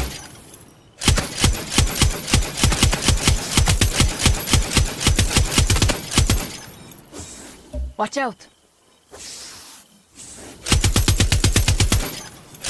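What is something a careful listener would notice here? A heavy machine gun fires rapid bursts.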